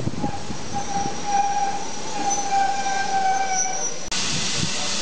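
Train brakes squeal as the train slows.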